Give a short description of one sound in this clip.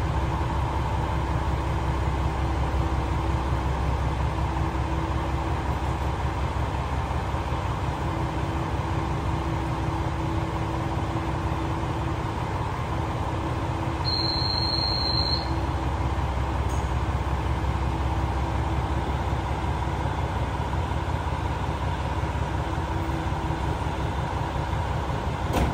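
A diesel train engine idles with a steady low rumble and hum.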